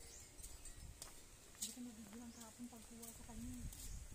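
Footsteps tap on a paved path.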